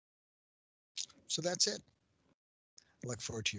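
A middle-aged man speaks calmly through a headset microphone on an online call.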